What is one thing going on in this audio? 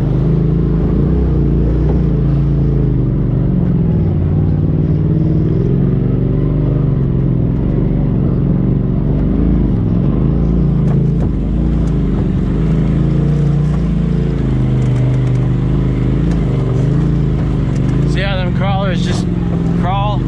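Tyres crunch and bump over rocks.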